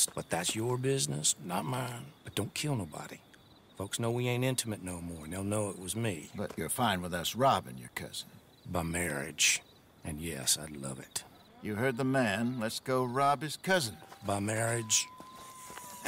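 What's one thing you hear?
A middle-aged man speaks calmly and wryly, close by.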